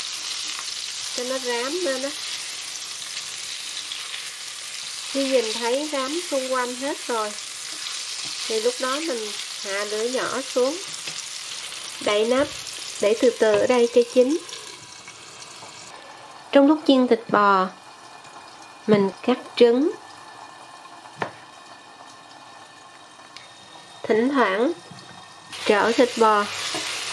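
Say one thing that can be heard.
Meat sizzles loudly in hot oil.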